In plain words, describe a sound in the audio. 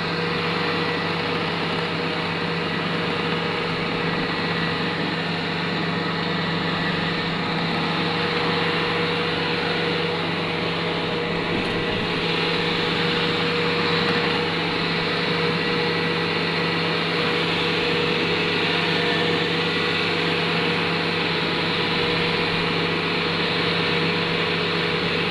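A tractor engine drones steadily up close.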